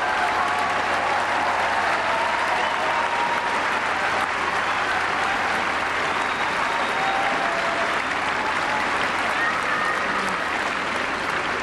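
Audience members cheer.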